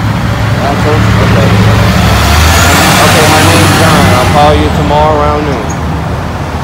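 A large bus drives past loudly.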